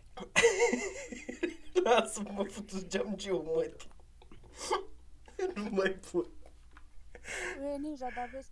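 A young man laughs and talks with animation close to a microphone.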